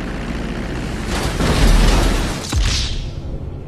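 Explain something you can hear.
A small plane's engine roars low overhead.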